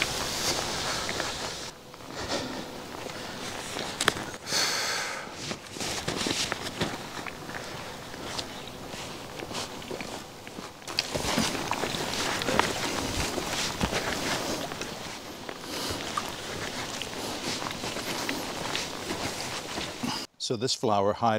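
Footsteps crunch and shuffle along a trail.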